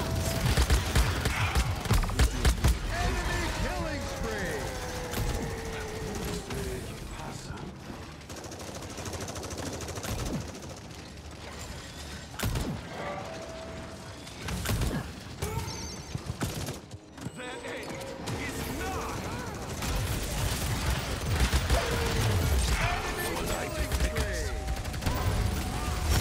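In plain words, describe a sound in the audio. Rapid gunfire and fiery blasts crackle loudly.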